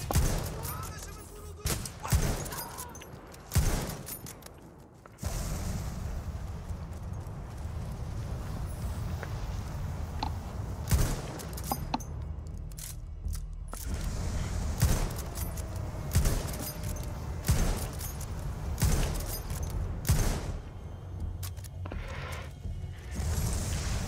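Gunshots and explosions bang repeatedly in a battle.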